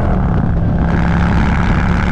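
A semi truck rushes past close by.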